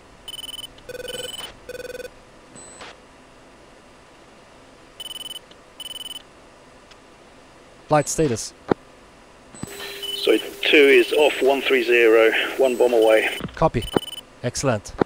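A cockpit warning tone beeps in short repeated bursts.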